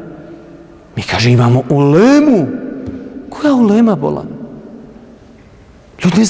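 A man speaks into a microphone in a reverberant hall.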